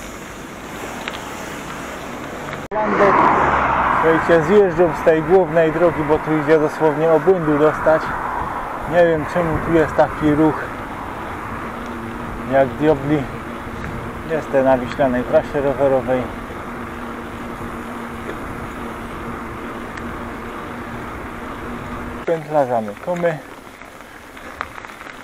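Bicycle tyres roll steadily along a paved road.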